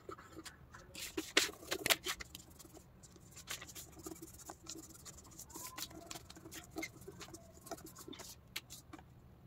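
Paper rustles and crinkles as it is folded and pressed flat.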